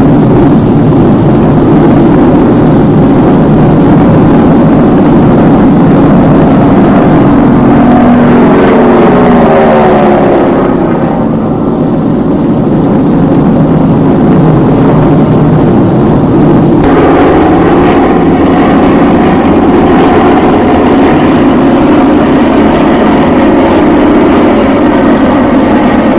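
Propeller aircraft engines drone loudly overhead.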